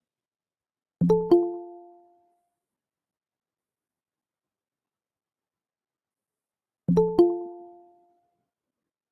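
A short electronic chime sounds twice.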